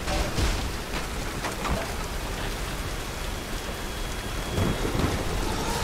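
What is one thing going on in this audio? Heavy rain pours steadily outdoors.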